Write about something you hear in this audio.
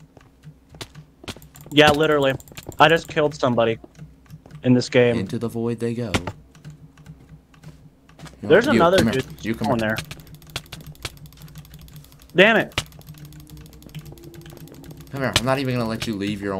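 Short game hit sounds click and thud repeatedly.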